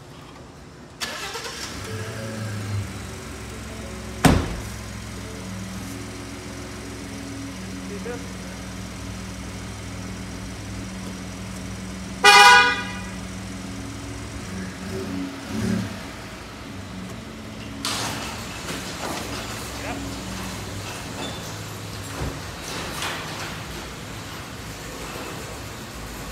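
A vehicle engine starts and idles with a low steady rumble.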